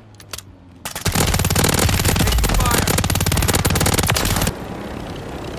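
An automatic gun fires in a rapid, loud burst.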